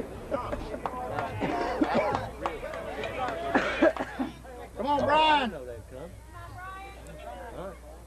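A crowd of spectators shouts and calls out nearby.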